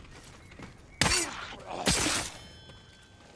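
A sword slashes through the air with a sharp swish.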